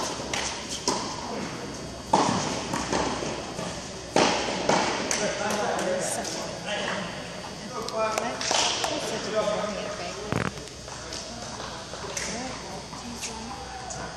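Tennis balls are struck with rackets, with sharp pops echoing in a large hall.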